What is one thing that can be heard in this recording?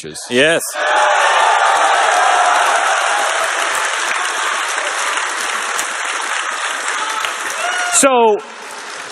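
A large audience applauds and cheers in a big hall.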